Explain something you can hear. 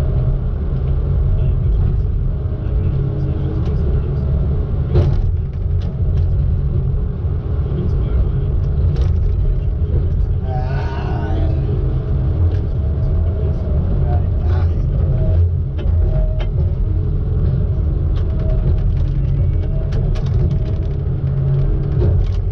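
A diesel engine rumbles steadily close by.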